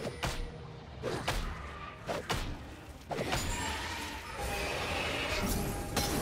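Sharp magical blasts and impacts crack in quick bursts.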